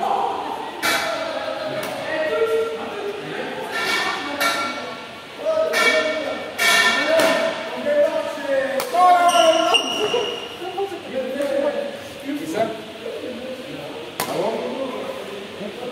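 Sports shoes squeak on a hard floor.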